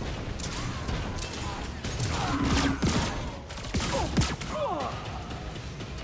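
Gunfire from a game weapon rattles in rapid bursts.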